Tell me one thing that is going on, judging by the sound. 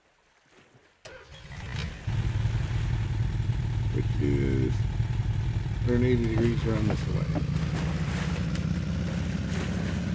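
A boat motor rumbles steadily.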